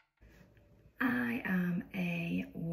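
A young woman speaks with animation close by.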